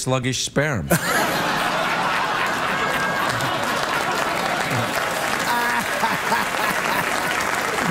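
A man laughs loudly, close to a microphone.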